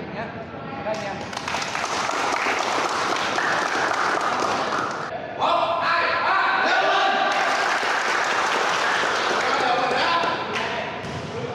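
A group of young people clap their hands together.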